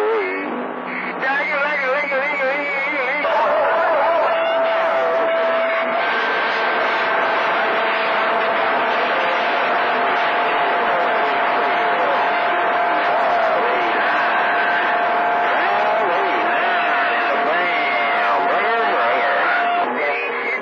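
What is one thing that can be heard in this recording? A radio receiver hisses and crackles with warbling, whistling interference.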